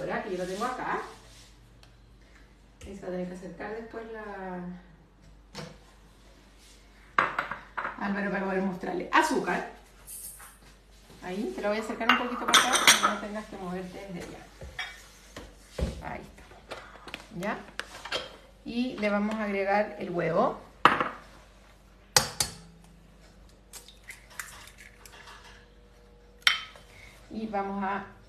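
A woman talks calmly and clearly close by.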